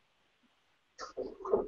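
A woman speaks briefly, heard close through an online call.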